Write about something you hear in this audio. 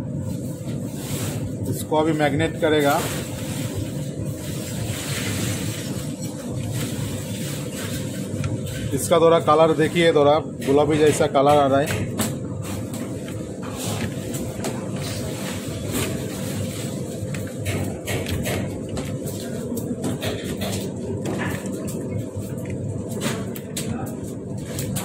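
Fingers rub and scrape grainy powder across a metal plate.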